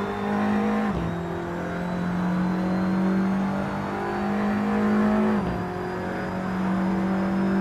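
A racing car engine drones at high speed, dropping in pitch briefly as it shifts gear.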